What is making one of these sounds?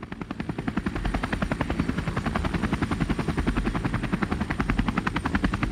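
Helicopter rotor blades chop rapidly and steadily.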